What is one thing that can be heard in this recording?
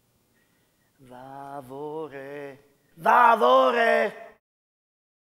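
A middle-aged man speaks loudly and with animation, close to a microphone.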